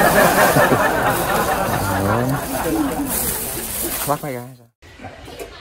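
Dry leaves and grass rustle and crackle underfoot.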